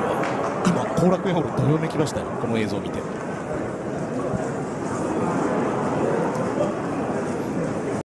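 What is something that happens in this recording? A large crowd cheers and murmurs in an echoing hall.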